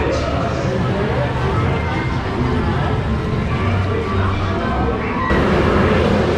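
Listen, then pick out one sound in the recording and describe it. A crowd of adults murmurs and chatters nearby.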